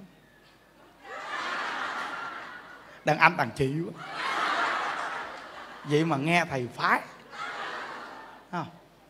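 A man laughs heartily into a microphone.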